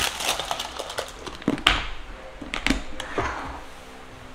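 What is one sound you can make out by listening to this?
A plastic container lid clicks and snaps onto a container.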